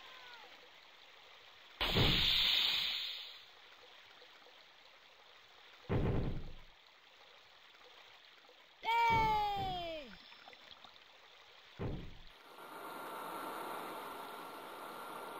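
A ship's hull splashes through water.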